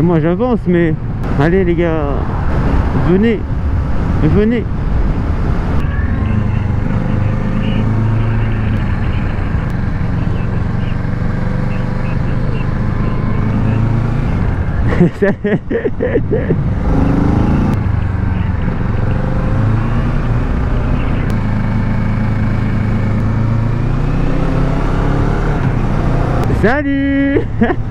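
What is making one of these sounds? A motorcycle engine revs up and drops sharply as gears change.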